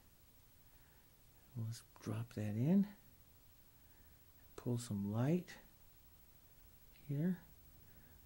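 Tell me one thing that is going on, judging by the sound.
A paintbrush softly brushes across a canvas.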